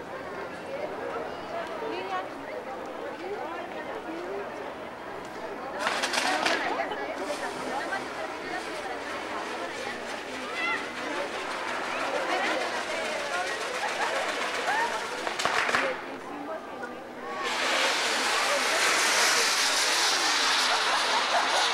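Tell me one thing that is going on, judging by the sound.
Sparklers fizz and crackle close by.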